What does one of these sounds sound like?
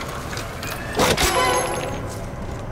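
A metal ammunition crate clanks open.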